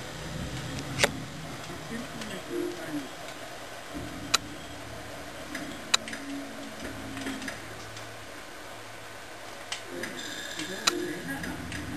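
Short menu clicks sound from a television.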